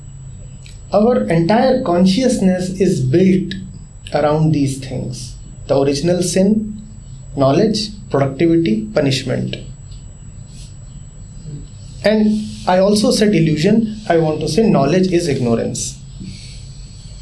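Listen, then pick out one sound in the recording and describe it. A middle-aged man speaks calmly and thoughtfully, close to a microphone, with pauses.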